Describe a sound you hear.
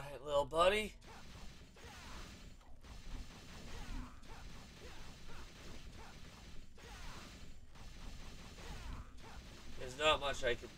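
Video game sword strikes and magic blasts clash rapidly.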